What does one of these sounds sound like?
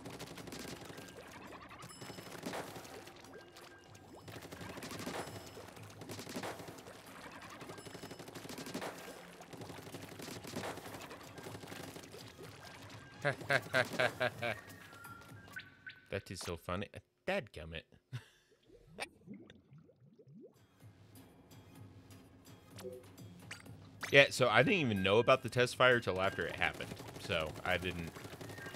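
Cartoonish ink blasters squirt and splatter in quick bursts.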